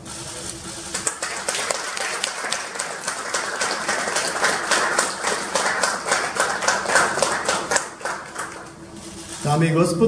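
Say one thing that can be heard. A crowd applauds loudly in an echoing hall.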